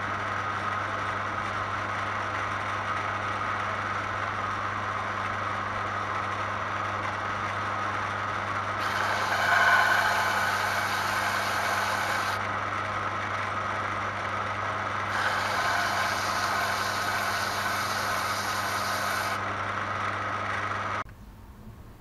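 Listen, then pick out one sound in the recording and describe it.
An electric belt sander motor hums steadily.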